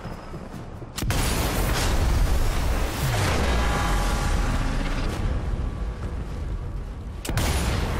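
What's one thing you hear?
A truck explodes with a deep roaring blast.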